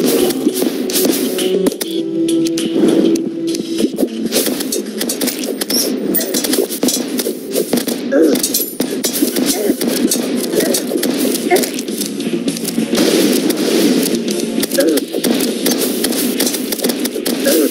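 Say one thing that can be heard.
Rapid video game shooting effects crackle and pop throughout.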